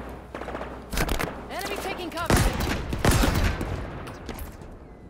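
Energy weapons fire in bursts with sharp zaps.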